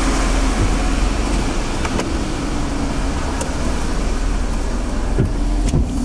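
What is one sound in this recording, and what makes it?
A car passes with its tyres hissing on a wet road.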